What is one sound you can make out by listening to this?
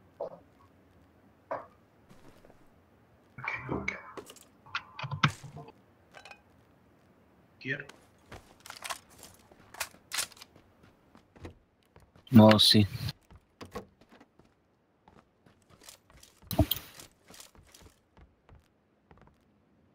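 A wooden door opens and closes.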